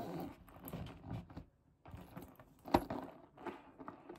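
A leather handbag thumps and rubs on a tabletop.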